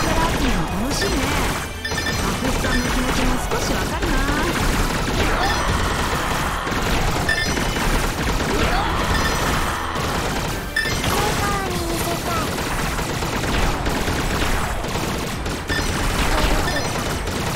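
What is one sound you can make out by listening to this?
Electronic game shots fire rapidly and steadily.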